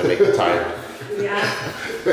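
A young man talks cheerfully close by.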